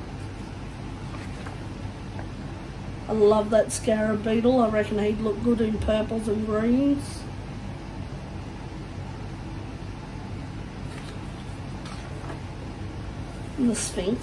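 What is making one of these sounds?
A page of a paper book is turned over with a soft rustle.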